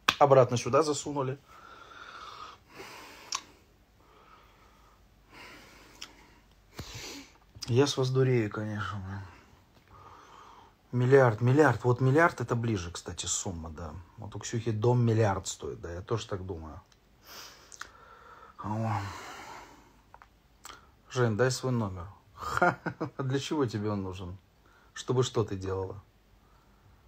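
A man talks close to a phone microphone, with pauses.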